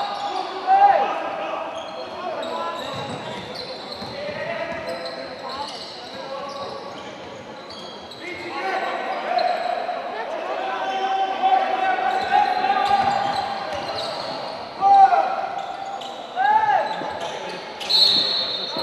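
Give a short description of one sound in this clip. A crowd cheers and shouts in a large echoing hall.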